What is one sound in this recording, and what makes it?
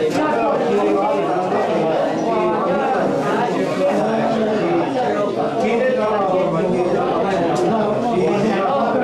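A crowd of men and women talk and chant together nearby.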